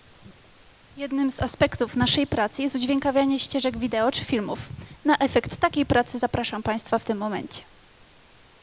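A young woman speaks into a microphone over loudspeakers in a large hall.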